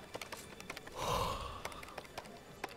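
A man sighs heavily.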